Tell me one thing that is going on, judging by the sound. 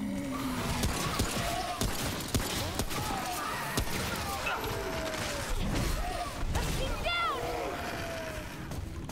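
A creature snarls and shrieks.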